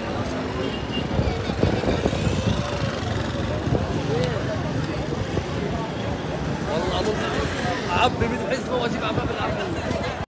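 A crowd of men and women shouts and talks loudly outdoors.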